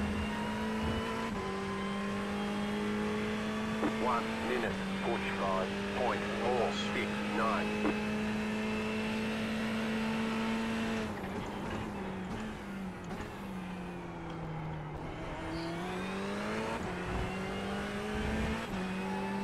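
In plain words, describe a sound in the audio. A racing car engine roars at high, steady revs, drops as the car brakes, then climbs again.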